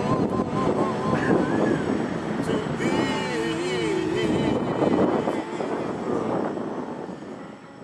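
An electronic keyboard plays a melody.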